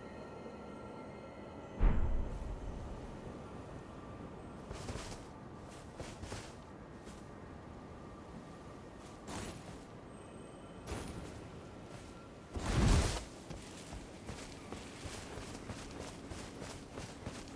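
Armour clanks with heavy footsteps.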